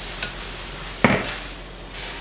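A glass blender jug knocks down onto its base.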